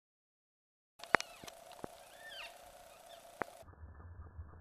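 A cockatoo screeches from a treetop.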